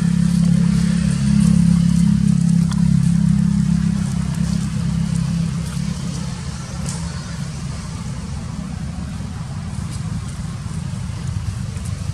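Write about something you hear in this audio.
Dry leaves rustle and crackle as monkeys shift on the ground.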